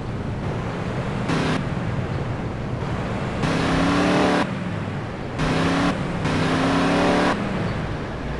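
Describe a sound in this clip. A car engine hums and revs as the car drives off.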